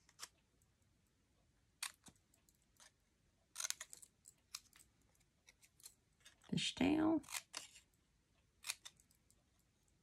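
Scissors snip through thin card.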